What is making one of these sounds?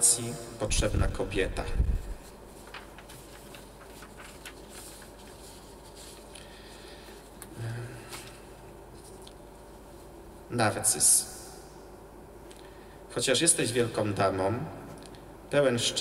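A man reads aloud into a microphone in a calm voice, with pauses.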